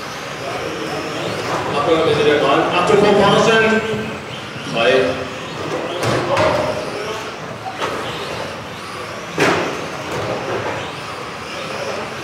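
Small remote-control cars whine as they race around a large echoing hall.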